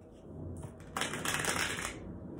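Cards riffle and rustle as they are shuffled.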